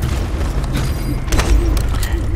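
A metal gate rattles open.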